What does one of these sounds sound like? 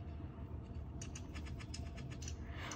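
Fingers tap quickly on a touchscreen.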